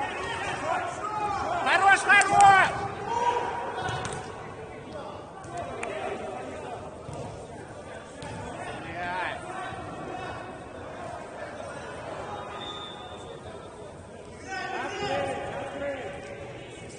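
Men shout loudly across an echoing indoor hall.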